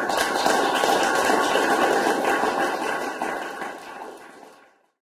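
An electric guitar plays chords and fades away.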